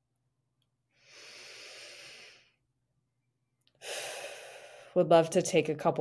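A young woman breathes in and out deeply, close to a microphone.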